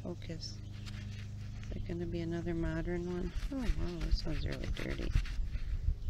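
Gloved hands scrape and crunch in dry soil.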